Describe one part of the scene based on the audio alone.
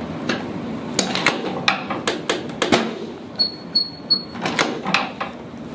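A treatment table drops with sharp knocks and clicks.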